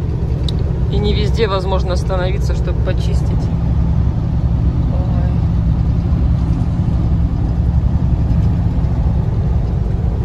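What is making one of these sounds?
A truck engine rumbles low and steady while driving.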